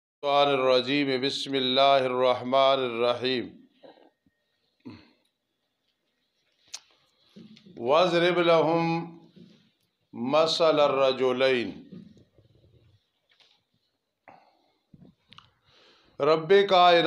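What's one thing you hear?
An elderly man recites in a slow, melodic chant through a microphone.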